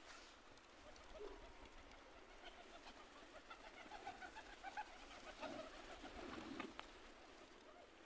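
Pigeons flap their wings as they take off and land close by.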